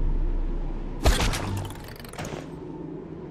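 A grappling hook fires and snaps against a wall.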